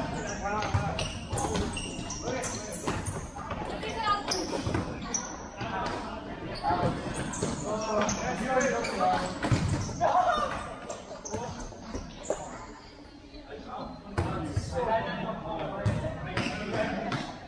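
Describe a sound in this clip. Sneakers squeak and thud on the court.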